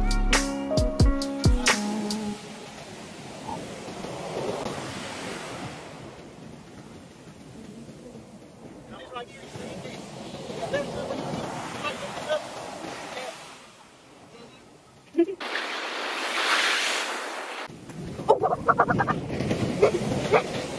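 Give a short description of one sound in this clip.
Waves wash onto a beach and break.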